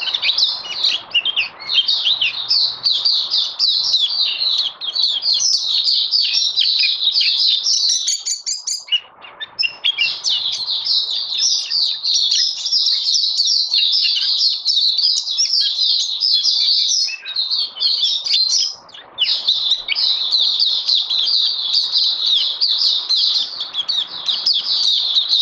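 A small bird sings a fast, rich warbling song close by, with short pauses.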